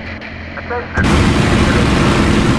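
A propeller engine roars loudly from close by.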